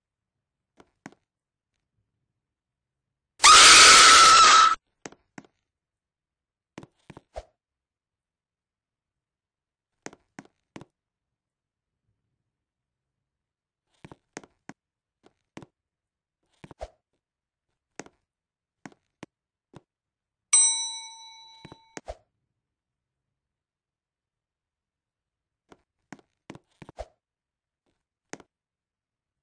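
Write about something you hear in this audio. Footsteps tap lightly on a hard floor.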